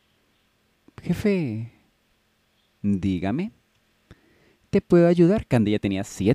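A young girl speaks hesitantly and softly, in short bursts.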